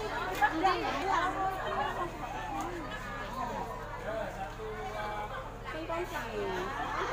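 A crowd of men and women chat and murmur nearby.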